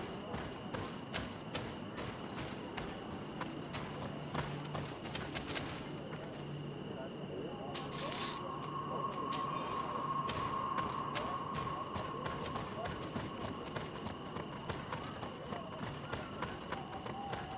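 Footsteps crunch quickly through dry leaves and grass.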